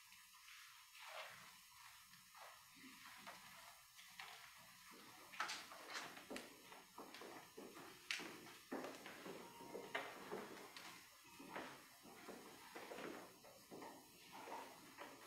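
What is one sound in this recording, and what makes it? Footsteps and shuffling echo in a large, reverberant hall.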